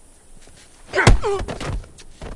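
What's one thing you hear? Heavy blows land with dull thuds during a close fight.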